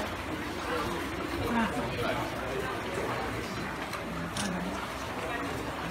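A group of adults chatter nearby, with several men and women talking over one another.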